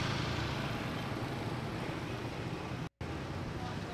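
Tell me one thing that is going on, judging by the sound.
A motorbike engine hums as it passes close by.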